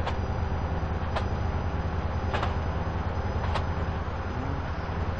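A diesel train engine rumbles steadily.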